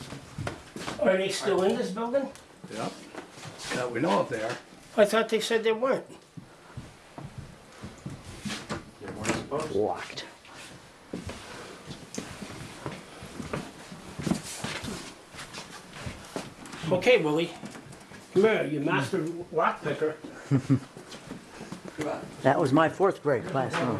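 An elderly man talks close by.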